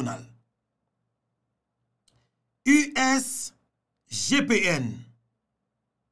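A man speaks close to a microphone in short, expressive bursts.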